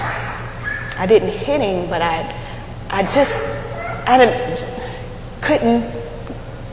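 A woman speaks with animation into a microphone in a room with a slight echo.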